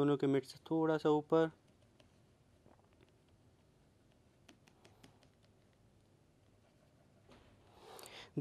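A marker pen scratches across paper in short strokes.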